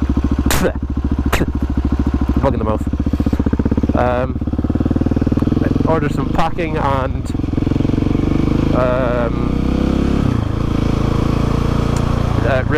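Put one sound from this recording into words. A motorcycle engine rumbles close by, rising and falling in pitch as it revs and shifts gears.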